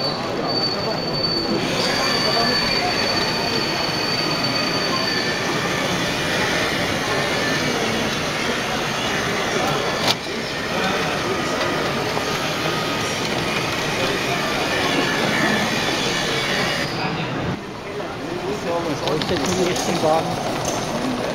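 A crowd of people murmurs and chatters in a large hall.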